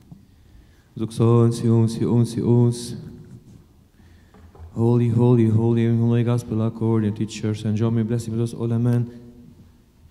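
Men chant together in a large echoing hall.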